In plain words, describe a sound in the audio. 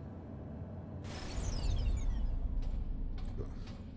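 A heavy metal door slides open with a whoosh.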